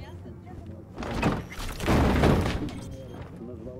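A heavy metal crate lid bangs and thuds.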